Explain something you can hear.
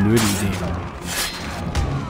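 Blades clash and clang in a fight.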